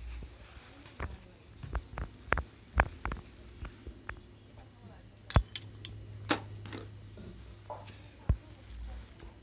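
A knife taps and scrapes while peeling vegetables.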